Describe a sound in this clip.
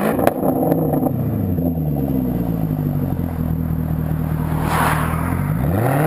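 A sports car engine settles into a deep, steady rumble.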